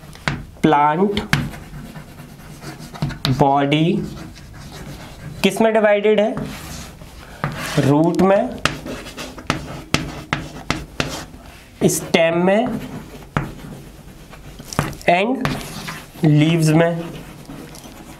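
A young man speaks in short, calm phrases close by.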